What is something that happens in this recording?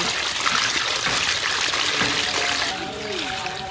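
Hands stir and rustle wet shrimp in water.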